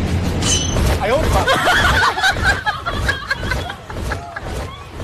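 A boy shouts excitedly.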